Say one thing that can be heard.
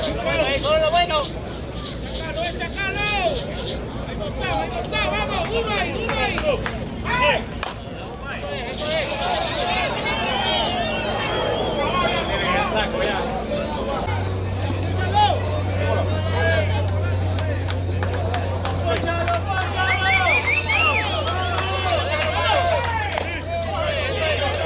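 A crowd of spectators chatters and calls out outdoors throughout.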